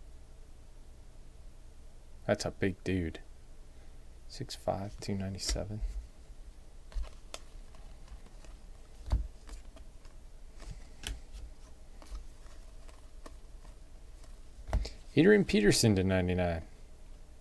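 Cardboard trading cards rustle and flick as they are shuffled by hand.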